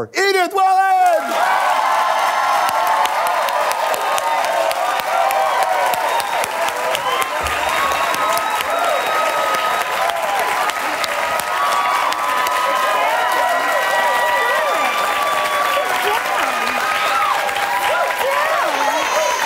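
A studio audience applauds loudly.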